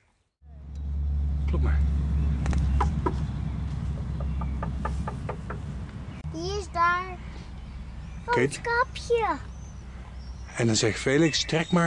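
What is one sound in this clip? A young girl talks close by, in a bright, lively voice.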